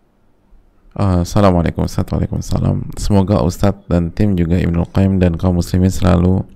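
A man speaks calmly and steadily into a microphone.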